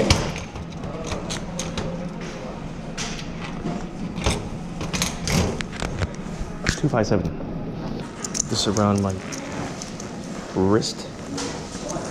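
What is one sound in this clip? Keys jingle and clink against metal locker doors.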